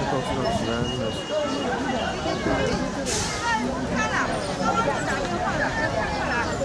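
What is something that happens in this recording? Traffic hums along a busy street.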